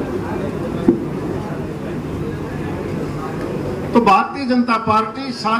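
An elderly man speaks with animation into a microphone, heard through a loudspeaker.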